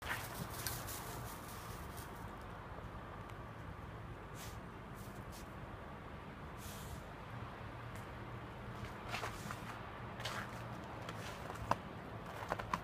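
A small dog's paws crunch softly in the snow.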